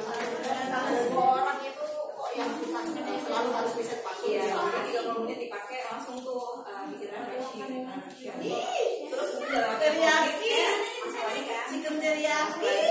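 Several women talk and chatter at once in an echoing room.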